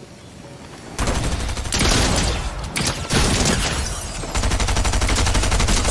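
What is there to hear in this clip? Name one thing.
Gunfire crackles rapidly in bursts.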